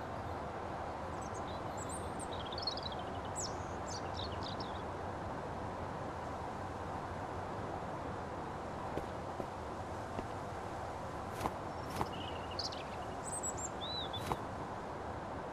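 Birds chirp outside.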